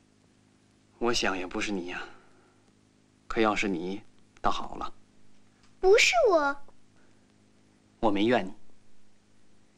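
A young girl speaks softly, close by.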